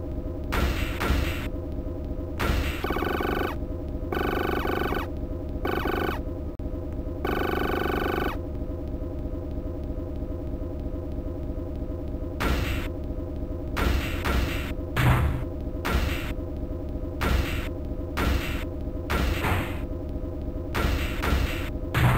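Electronic game music plays steadily throughout.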